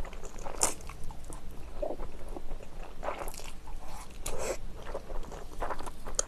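A young woman slurps noodles close to the microphone.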